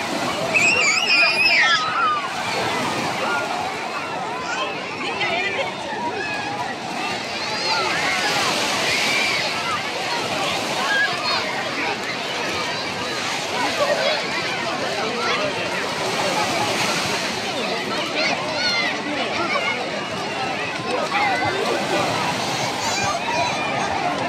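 Children shriek and squeal with excitement.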